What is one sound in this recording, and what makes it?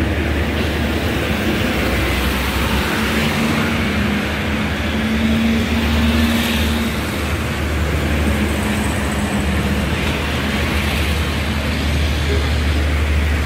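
Small trucks and cars drive past on an asphalt road.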